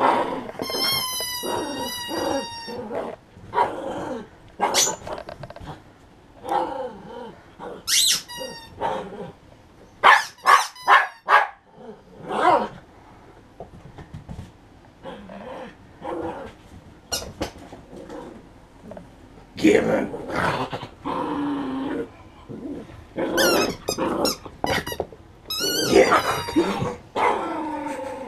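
A dog toy squeaks in sharp bursts.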